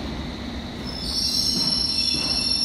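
Train brakes squeal sharply.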